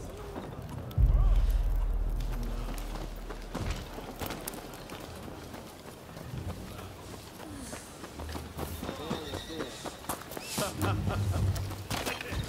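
Footsteps patter quickly over stone and dirt.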